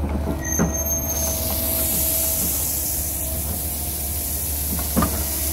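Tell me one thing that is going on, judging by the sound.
Loose dirt pours from an excavator bucket into a trench.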